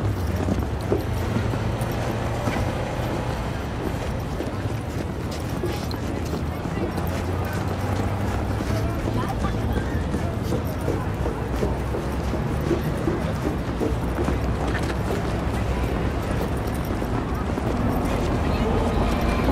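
A crowd of people murmurs and chatters in the distance.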